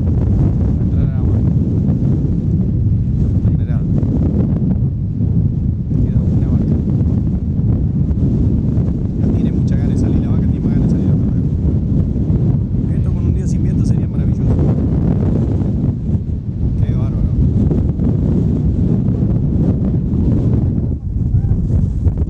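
Strong wind blows across open ground and buffets the microphone.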